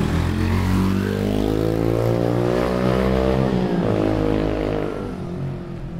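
A motorcycle engine hums closer and then fades away.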